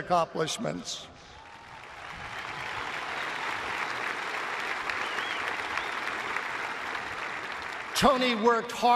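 A large crowd applauds steadily.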